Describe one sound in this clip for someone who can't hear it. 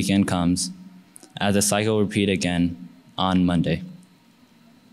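A young man reads out calmly through a microphone in a large hall.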